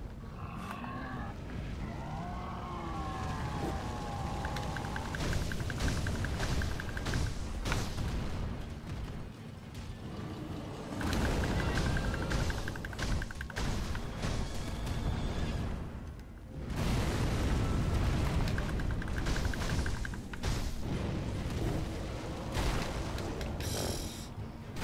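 Sword blades clash and strike.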